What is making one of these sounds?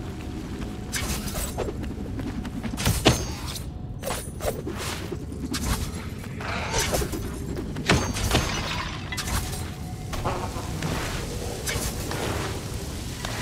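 Sword slashes whoosh and strike in quick bursts.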